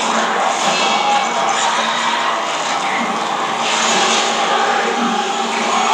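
Blood and flesh spatter wetly.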